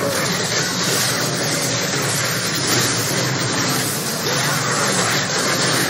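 Magic blasts crackle and whoosh in a fast fight.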